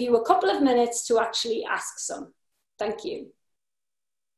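A middle-aged woman speaks calmly and warmly into a nearby microphone.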